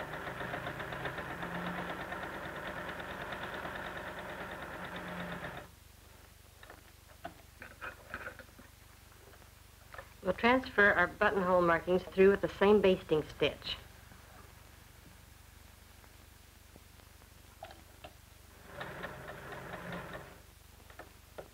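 An electric sewing machine hums as it stitches fabric.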